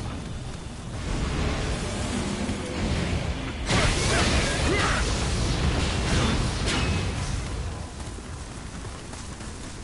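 Swords clash and strike in a fierce fight.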